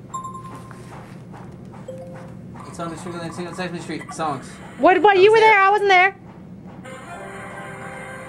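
Electronic tones glide and warble from a small laptop speaker.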